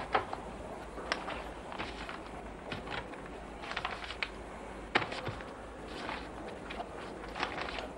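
A briefcase lid knocks and clicks as it is handled.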